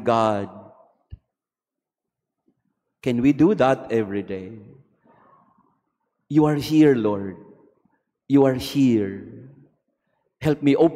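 A man speaks calmly in phrases with pauses, heard through a microphone in a reverberant hall.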